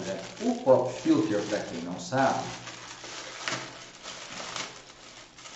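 Plastic wrapping crinkles in a man's hands.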